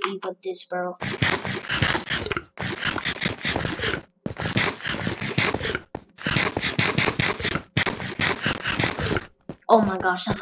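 Blocks of dirt crunch repeatedly as they are dug away.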